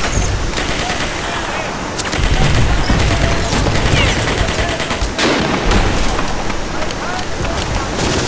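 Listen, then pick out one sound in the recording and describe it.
Waves wash and splash in shallow water.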